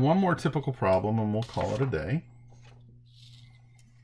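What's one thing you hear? A sheet of paper rustles as it is moved.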